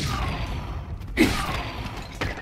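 A sword strikes a skeleton with a sharp crack.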